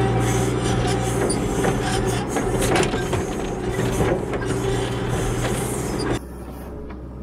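Dirt and roots scrape and crunch under a digging bucket.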